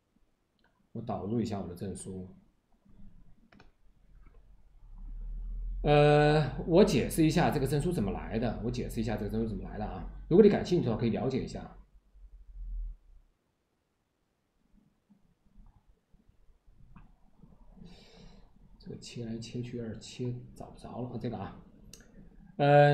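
A man talks calmly and close to a microphone, in pauses.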